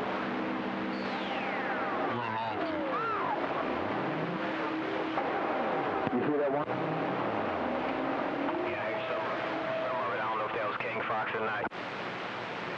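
Whistling tones glide up and down through the radio static.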